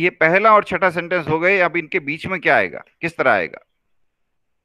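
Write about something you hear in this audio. An elderly man speaks calmly through a microphone on an online call.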